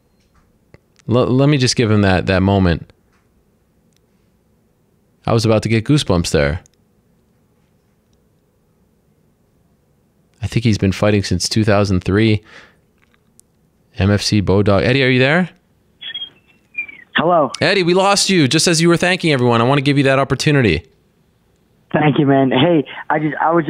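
A man talks with animation into a close microphone, in short bursts with pauses.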